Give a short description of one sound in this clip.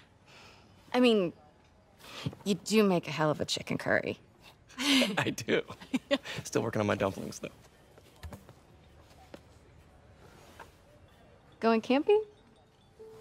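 A young woman speaks warmly and with animation, close by.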